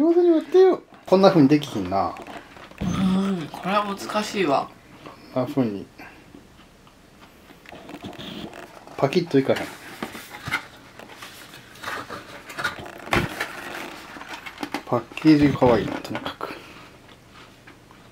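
A cardboard box rustles as it is handled.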